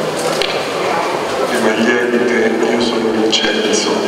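An elderly man speaks slowly through a microphone in a large echoing hall.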